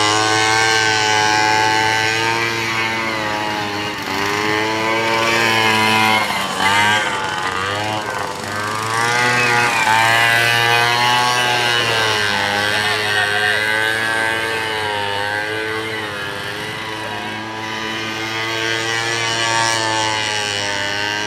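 A buggy engine revs hard, its pitch repeatedly rising and falling.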